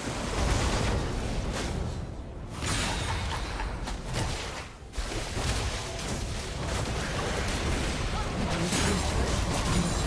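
Video game spells crackle and whoosh in a busy battle.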